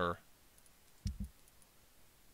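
A soft interface click sounds once.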